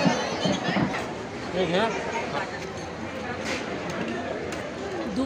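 Several women chat and laugh close by.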